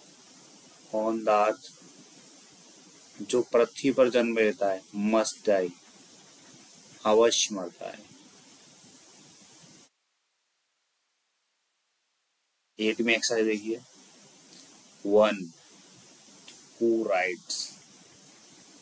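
A young man speaks calmly into a close microphone, explaining in short phrases with pauses.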